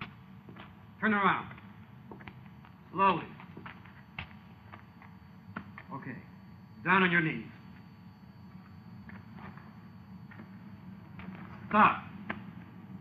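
A man barks orders loudly outdoors, in short bursts.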